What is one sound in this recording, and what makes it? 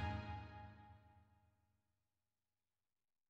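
Game music plays briefly and fades out.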